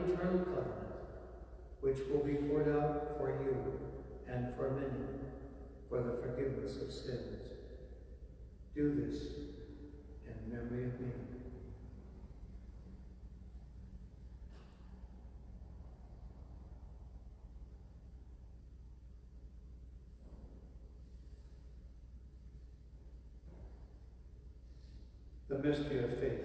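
An elderly man speaks calmly through a microphone in an echoing room.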